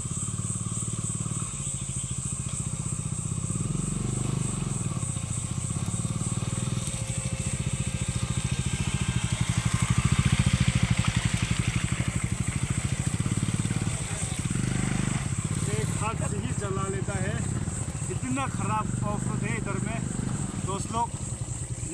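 A motorcycle engine rumbles and revs nearby.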